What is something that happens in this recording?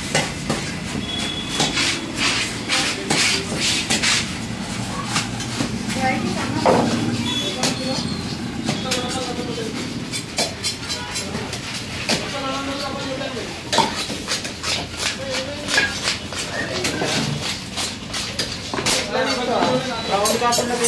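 A knife scrapes scales off a fish.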